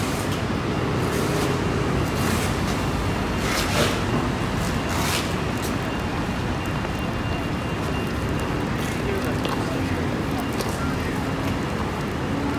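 High heels click on pavement.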